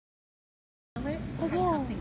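A dog whines close by.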